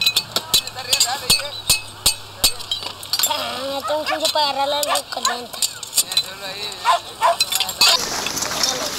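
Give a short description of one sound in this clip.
Metal tools clink and scrape against each other.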